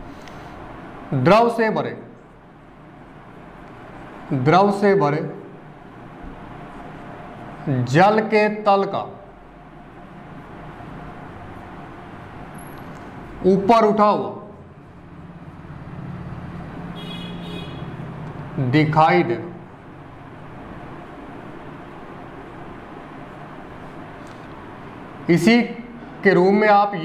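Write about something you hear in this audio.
A young man speaks in short bursts, close by, with pauses between.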